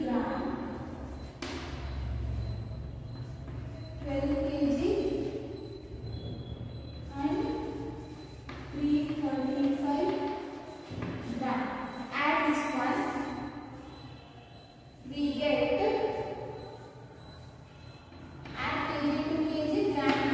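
A woman speaks clearly and steadily, as if explaining to a class.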